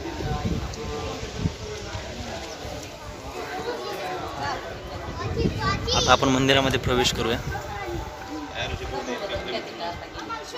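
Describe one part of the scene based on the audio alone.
Children chatter nearby.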